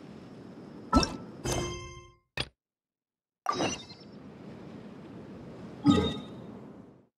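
Short game interface chimes and clicks ring out.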